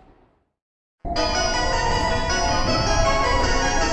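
A chime plays as train doors open.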